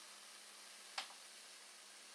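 An electric spark snaps once with a sharp crack.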